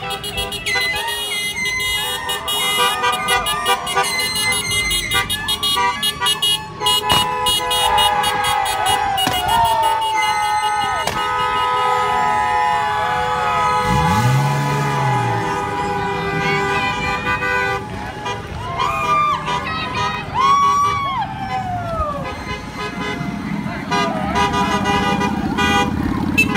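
A crowd of young people cheers and shouts outdoors.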